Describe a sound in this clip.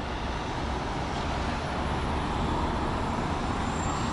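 Cars drive past on the road nearby.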